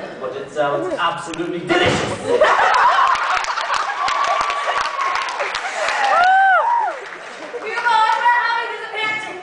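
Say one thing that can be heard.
A woman speaks loudly and theatrically from a stage in a large hall.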